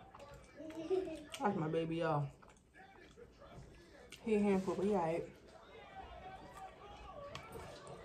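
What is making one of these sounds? A woman chews food noisily close to a microphone.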